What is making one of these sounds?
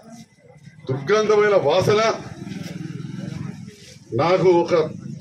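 A middle-aged man speaks with animation through a microphone and loudspeakers.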